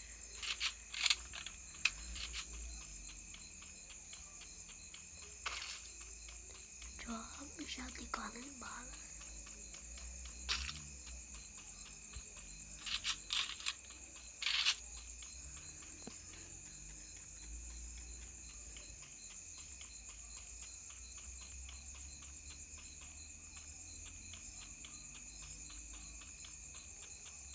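Footsteps run quickly over grass in a game.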